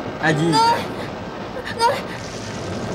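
A woman cries out sharply.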